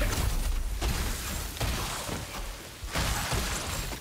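Ice shatters and crunches.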